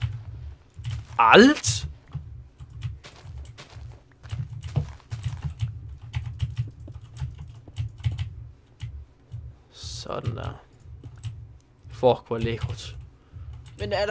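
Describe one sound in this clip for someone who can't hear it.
Blocks crunch and tap in quick bursts.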